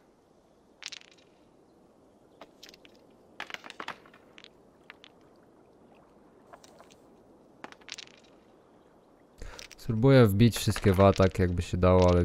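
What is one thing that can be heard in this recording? Dice rattle and clatter onto a wooden board.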